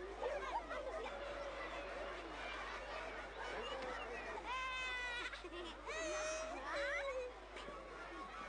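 A crowd of children chatters and shouts nearby.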